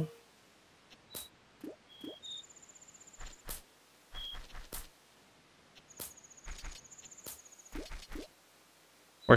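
Light footsteps patter quickly on grass.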